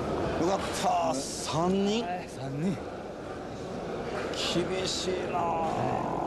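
A middle-aged man talks up close.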